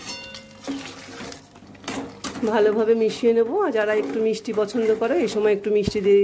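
A spatula stirs thick food in a pot.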